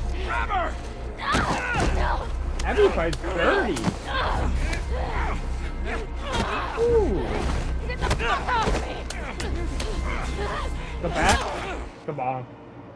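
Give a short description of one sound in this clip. A man shouts angrily up close.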